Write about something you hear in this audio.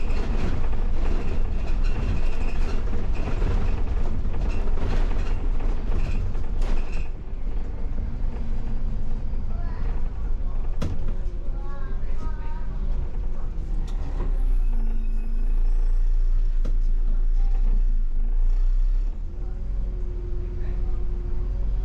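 The bus rattles and clatters over the road.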